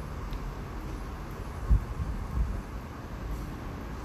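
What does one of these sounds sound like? Liquid pours softly into a bowl.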